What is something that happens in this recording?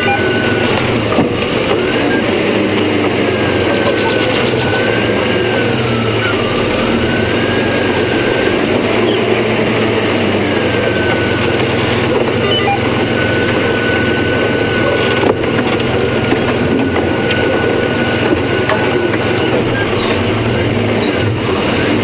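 The vehicle jolts and rattles over bumps.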